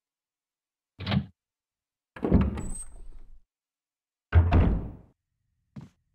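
A heavy wooden door creaks open slowly.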